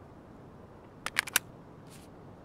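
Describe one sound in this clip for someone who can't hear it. A rifle magazine clicks and rattles into place.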